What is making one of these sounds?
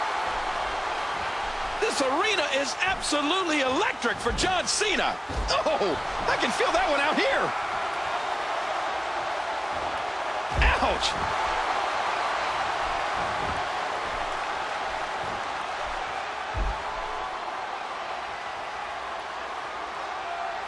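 A large arena crowd roars.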